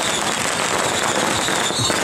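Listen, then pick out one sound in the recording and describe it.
Fireworks pop and crackle overhead.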